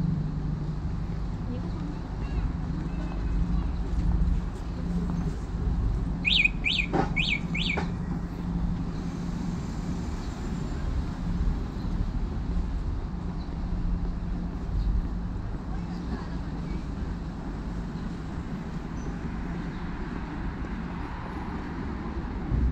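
Footsteps walk along a city sidewalk outdoors.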